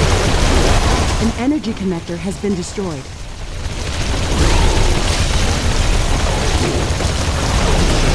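Explosions rumble and crackle in a battle.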